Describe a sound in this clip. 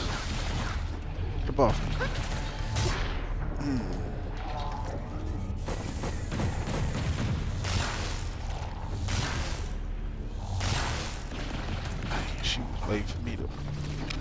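Game music plays with a low, droning beat.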